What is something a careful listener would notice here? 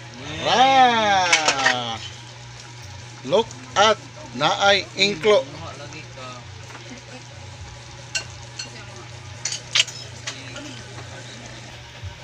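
Sauce bubbles gently in a pan.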